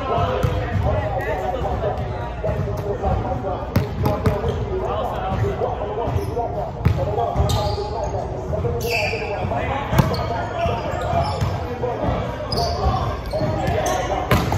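A volleyball is struck, thudding in a large echoing gym.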